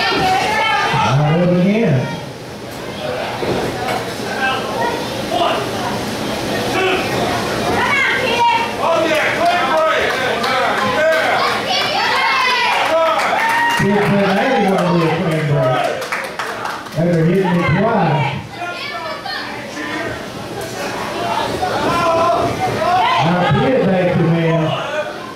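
Men in the crowd shout and jeer close by.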